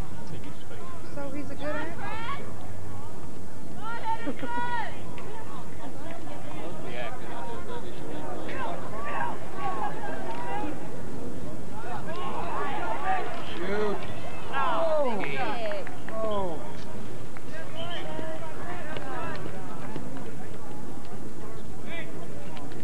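A crowd of spectators calls out and cheers outdoors.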